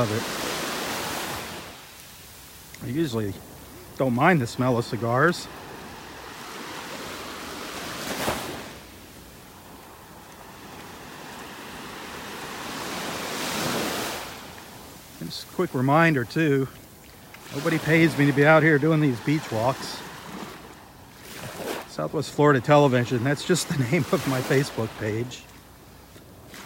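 Small waves lap and wash gently onto the shore.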